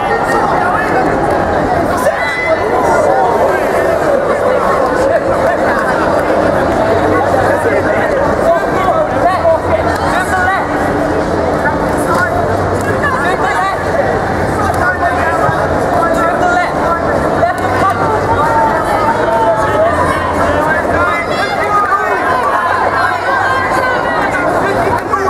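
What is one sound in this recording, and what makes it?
A crowd of spectators chatters and shouts throughout in a large echoing hall.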